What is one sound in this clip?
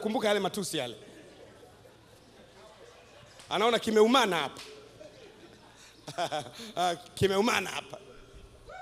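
A man speaks with animation into a microphone over a loudspeaker, in bursts with pauses.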